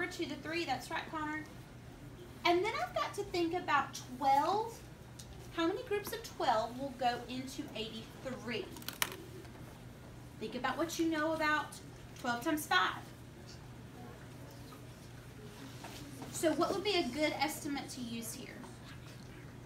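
A woman speaks calmly and clearly nearby, explaining.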